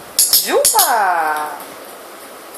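A small dog yelps and whines close by.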